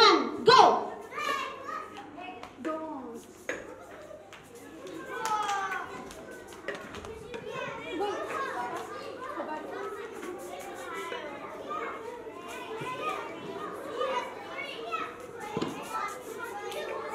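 Young children chatter and shout excitedly in a room.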